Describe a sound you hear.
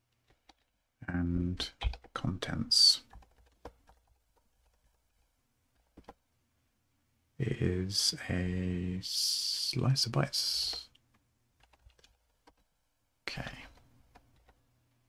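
A man speaks calmly close to a microphone, in short bursts with pauses.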